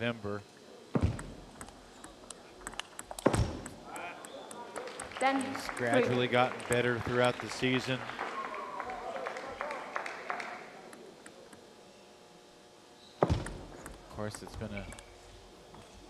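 A table tennis ball clicks sharply off paddles and the table.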